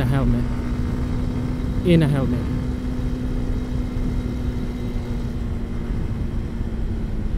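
Wind rumbles past the rider.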